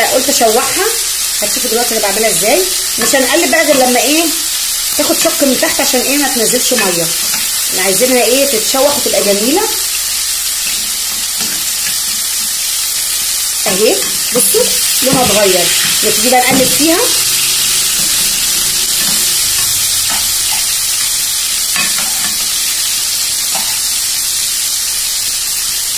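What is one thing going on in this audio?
Meat sizzles steadily in a hot frying pan.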